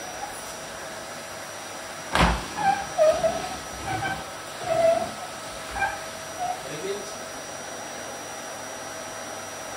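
A vacuum cleaner hums steadily nearby.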